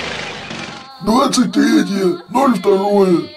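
A man speaks with animation in a cartoonish voice.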